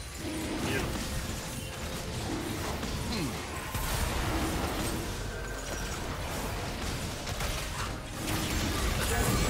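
Weapons clash and strike repeatedly.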